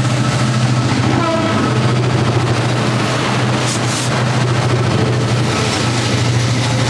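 Train wheels clatter rhythmically over the rails as freight cars rush past close by.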